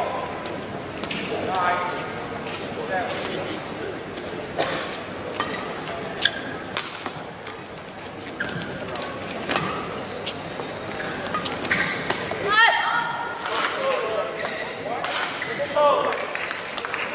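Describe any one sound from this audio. Rackets strike a shuttlecock back and forth in a large echoing hall.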